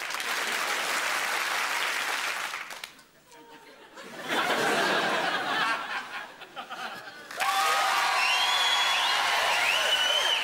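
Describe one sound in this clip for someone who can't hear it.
A large audience claps and cheers in a big hall.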